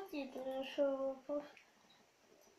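A young boy talks up close.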